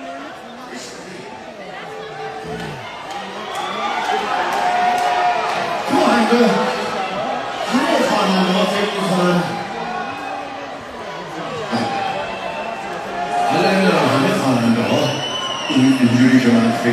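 A man sings loudly through a microphone over loudspeakers in a large echoing hall.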